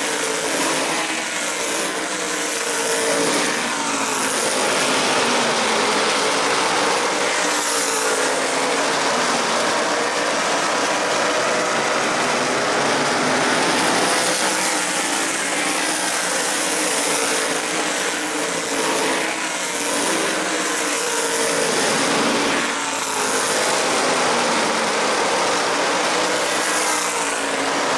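Race car engines roar loudly as cars speed past on the track.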